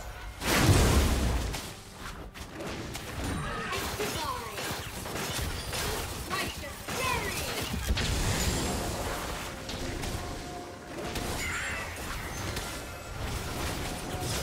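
Game spell effects whoosh, crackle and boom during a fight.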